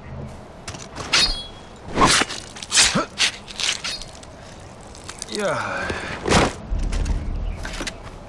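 A knife slices wetly into flesh.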